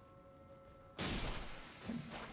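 A blade strikes with a loud crackling burst.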